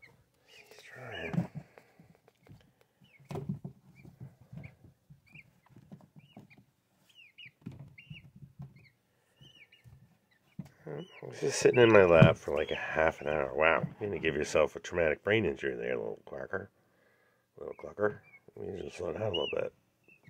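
A small bird chirps and calls repeatedly.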